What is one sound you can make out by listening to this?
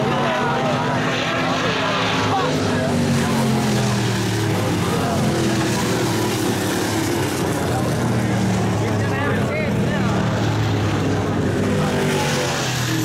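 Race car engines roar loudly as cars speed around a dirt track.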